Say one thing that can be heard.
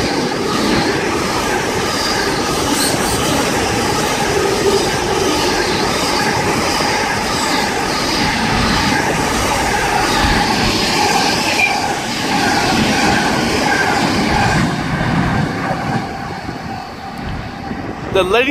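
A freight train rumbles and clatters past close by, then fades into the distance.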